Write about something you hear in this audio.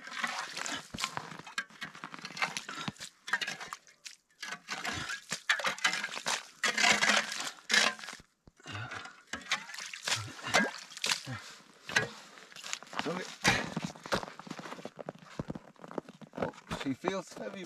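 An ice chisel chops and stirs slush in a hole in the ice.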